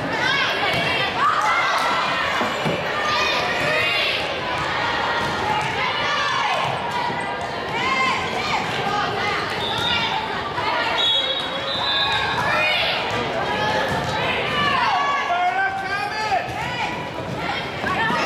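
A volleyball thumps against players' arms and hands.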